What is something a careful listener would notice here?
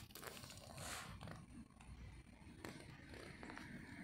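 A cat scratches its ear rapidly with a hind paw.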